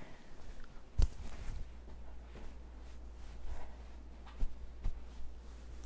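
Boots step on a hard floor.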